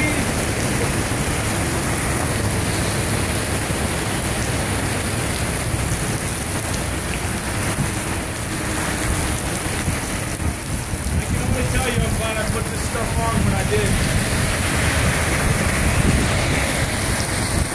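Strong wind roars and buffets the microphone.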